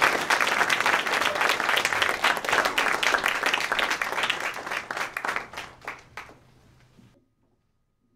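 An audience applauds loudly in a hall, then the clapping dies away.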